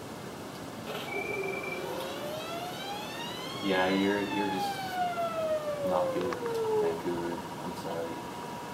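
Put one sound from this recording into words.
A shrill electronic fanfare with gliding tones plays from a video game after a goal.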